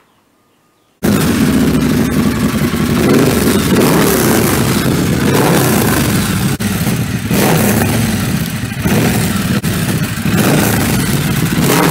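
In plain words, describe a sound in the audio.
A motorcycle engine starts up and rumbles loudly at idle, with the throttle revved now and then.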